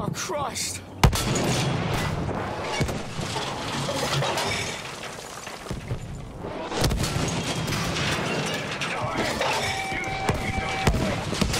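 A heavy field gun fires with loud, sudden booms.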